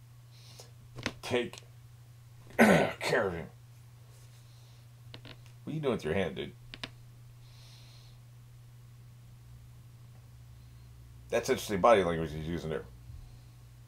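An older man speaks animatedly in short bursts, close to a microphone.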